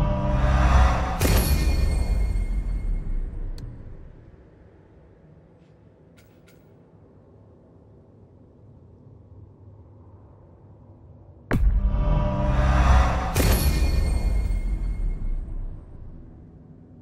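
A deep, booming whoosh swells up and slowly fades, twice.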